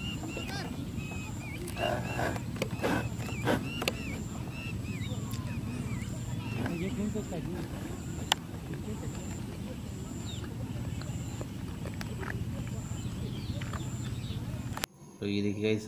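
Birds call high overhead.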